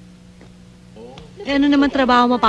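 A young girl speaks loudly and excitedly nearby.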